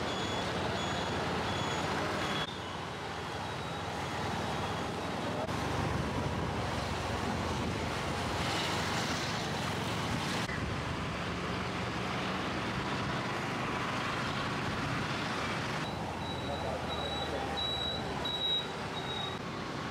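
A motor scooter engine hums steadily while riding.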